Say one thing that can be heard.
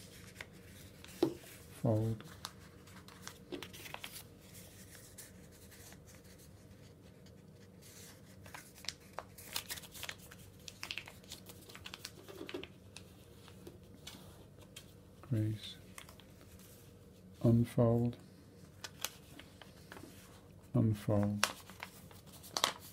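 Paper rustles and crinkles as it is folded and creased by hand.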